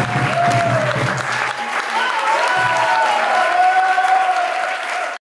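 A woman claps her hands in rhythm.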